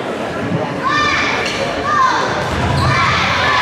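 Sneakers squeak on a hardwood floor.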